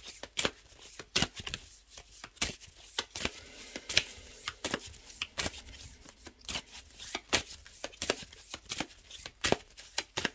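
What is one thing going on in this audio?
A hand taps and shuffles cards on a table with sharp clicks.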